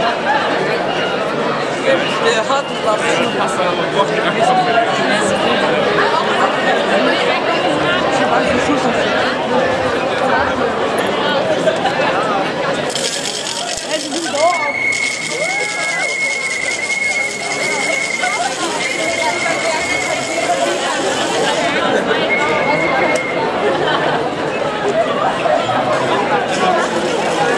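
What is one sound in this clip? A large crowd of men and women chatters and calls out outdoors.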